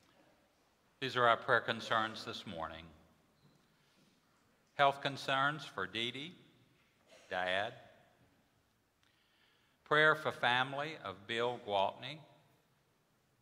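A man speaks slowly and solemnly through a microphone in a large echoing hall, with pauses between phrases.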